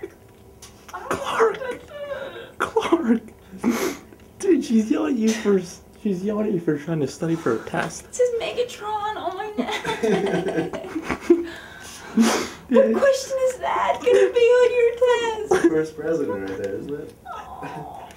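A young woman squeals and shrieks with laughter.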